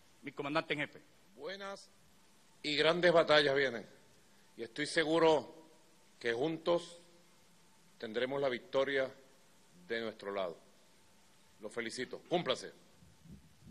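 A man speaks firmly and formally through a microphone, in short phrases with pauses.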